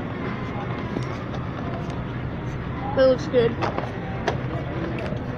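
A cardboard box rustles and taps as it is handled close by.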